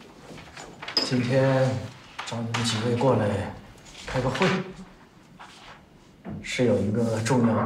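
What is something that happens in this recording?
An elderly man speaks calmly and seriously.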